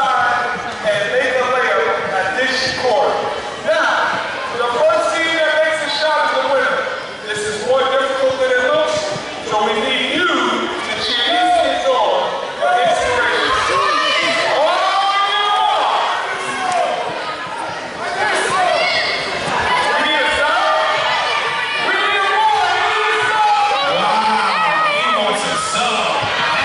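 A man talks with animation through a loudspeaker in a large echoing hall.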